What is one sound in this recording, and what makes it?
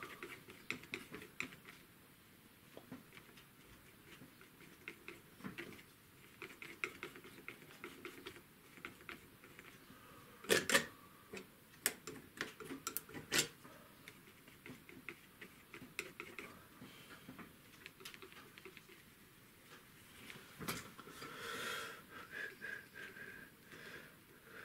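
A palette knife scrapes and taps softly on a painting surface.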